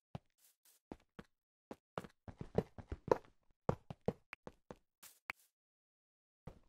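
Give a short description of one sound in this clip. Stone blocks crack and break under a pickaxe in a video game.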